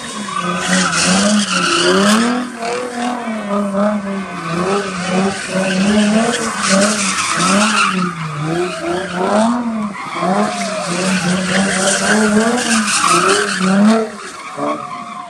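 A car engine revs hard and wails up and down.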